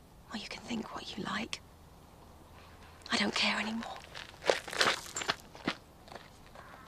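A woman speaks quietly up close.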